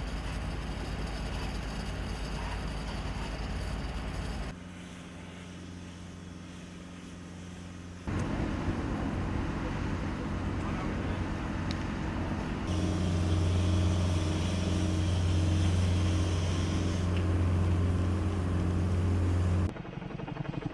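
A wildfire roars and crackles.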